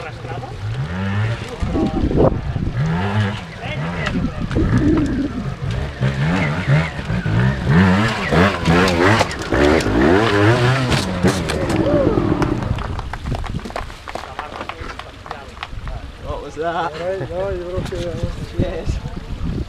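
A motorbike engine revs hard in bursts.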